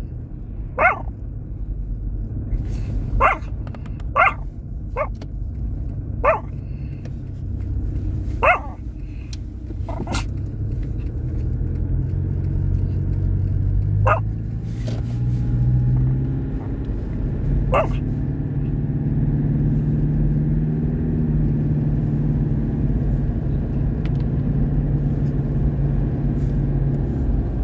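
A car drives along a snowy road, its low rumble heard from inside.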